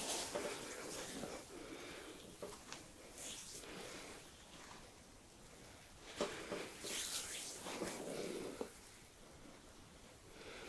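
Hands rub and knead bare skin with soft swishing strokes.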